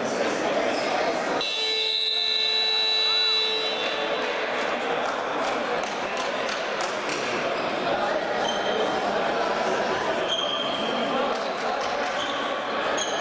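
Many people talk at once in a large echoing hall.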